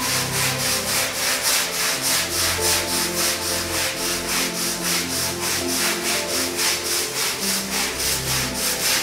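A stiff brush scrubs back and forth across a wet wool rug.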